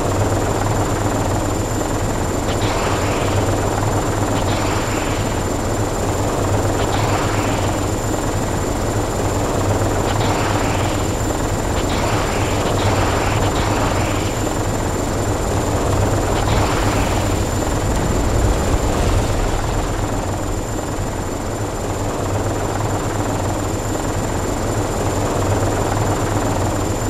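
A helicopter's engine and rotor roar steadily throughout.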